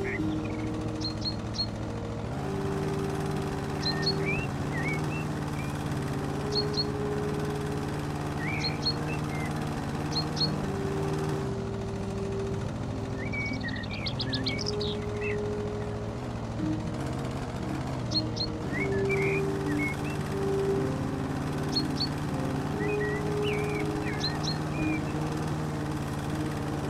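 A lawn mower engine hums steadily and pitches up and down as it cuts grass.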